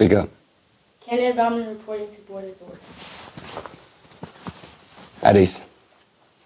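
A man speaks calmly in reply.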